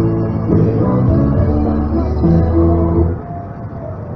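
Women sing loudly close by.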